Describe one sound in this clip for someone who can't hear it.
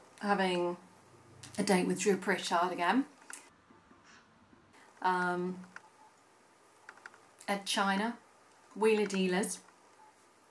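A woman speaks calmly and close to a microphone, in short phrases with pauses.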